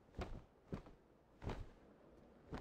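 Wings flap in quick, heavy beats.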